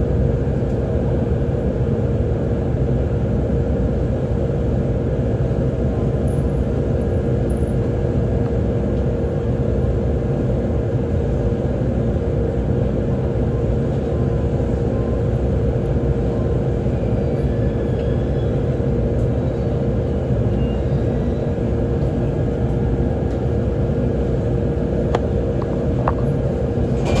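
A train's motor hums with a steady tone.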